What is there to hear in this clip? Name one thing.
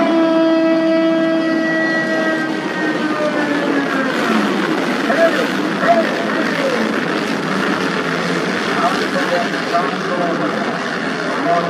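Many dirt bike engines roar loudly as a race starts.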